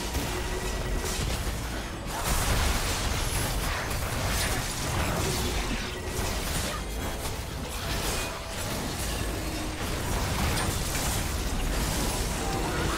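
Magical spell effects whoosh and crackle during a fight.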